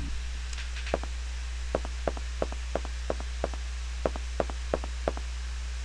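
Quick footsteps tap across a hard floor.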